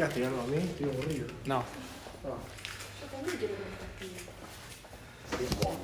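A young man talks casually and close up.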